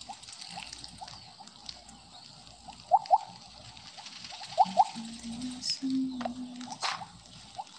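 Short electronic blips pop in a quick, uneven series.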